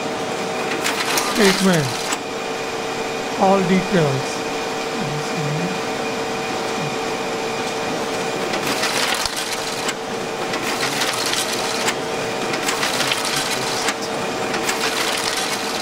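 Paper feeds through a printer with soft rustling and clicking.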